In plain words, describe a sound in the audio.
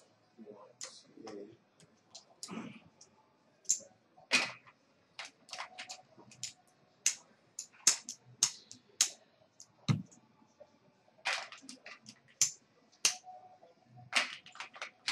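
Poker chips click and clatter as they are stacked and handled.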